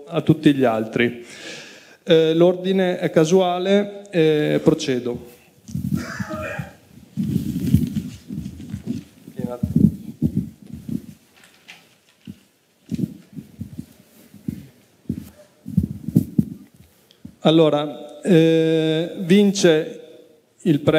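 A man speaks steadily through a microphone.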